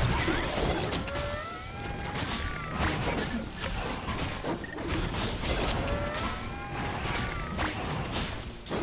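A large creature screeches with rising and falling cries.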